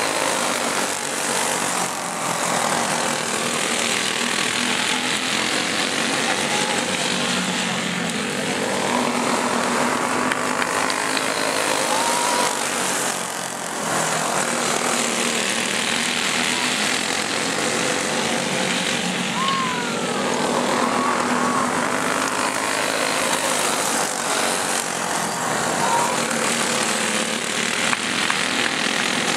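Small racing engines buzz and whine as karts circle a dirt track.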